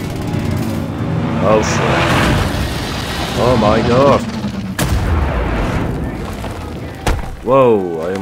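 An explosion roars and rumbles.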